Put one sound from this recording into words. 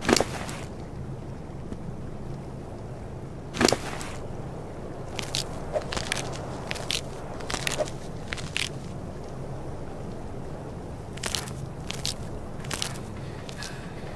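Soft interface clicks tap now and then.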